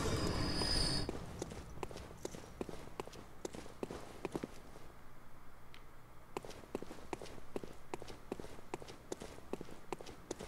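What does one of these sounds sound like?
Footsteps crunch quickly over rubble and stone.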